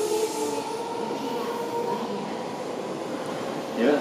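A second train approaches along the tracks.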